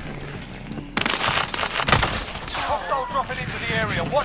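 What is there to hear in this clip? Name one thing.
A rapid burst of gunfire rings out.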